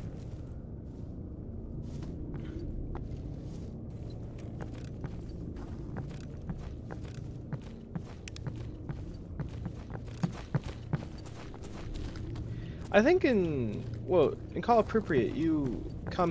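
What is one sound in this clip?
Footsteps crunch over debris and concrete.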